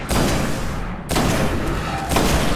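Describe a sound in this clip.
An explosion booms with a bright blast.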